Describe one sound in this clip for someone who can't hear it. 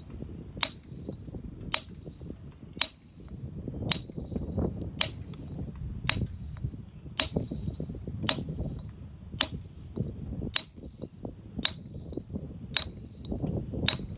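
A hammer strikes a steel chisel on stone with sharp, ringing blows about once a second.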